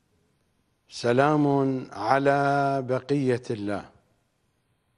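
A middle-aged man recites in a long, drawn-out chant close to a microphone.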